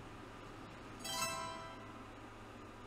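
A bright chime rings out and fades.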